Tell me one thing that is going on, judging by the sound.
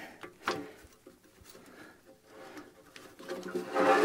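A metal wrench clinks against a fitting.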